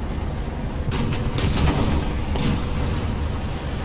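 Shells explode nearby with heavy blasts.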